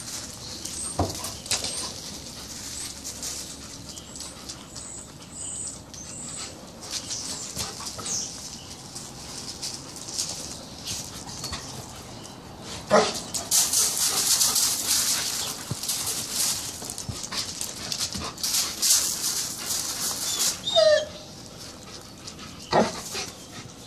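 A dog barks sharply.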